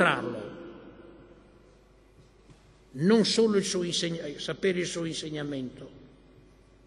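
An elderly man speaks calmly into a microphone, his voice filling a large echoing hall.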